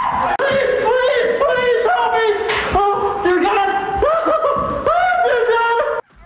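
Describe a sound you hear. A man screams in pain.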